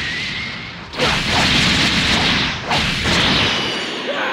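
An energy beam roars loudly.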